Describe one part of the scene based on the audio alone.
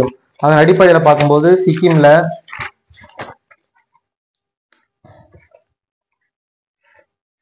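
Paper pages rustle as a man leafs through them.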